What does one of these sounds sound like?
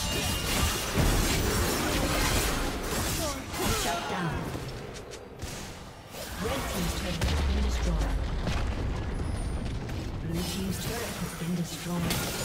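Spell blasts and weapon hits crackle and boom in a fast game fight.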